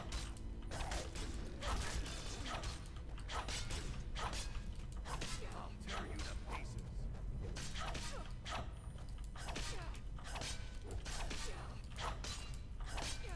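Warriors grunt and cry out as they fight.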